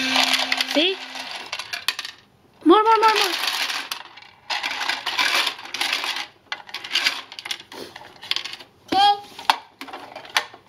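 Plastic parts of a toy truck click and rattle as they are moved.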